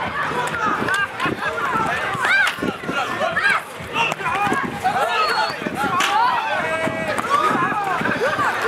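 Children and onlookers shout and cheer excitedly outdoors.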